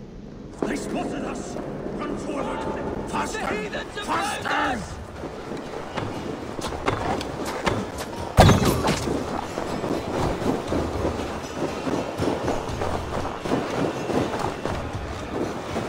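Footsteps crunch quickly through snow.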